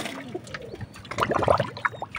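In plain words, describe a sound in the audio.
Water splashes as a hand stirs it in a bucket.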